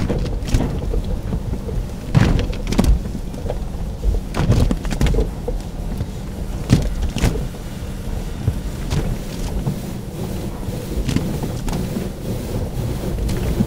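Water sprays and splashes against a car window.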